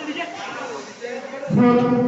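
A young man sings through a microphone and loudspeakers.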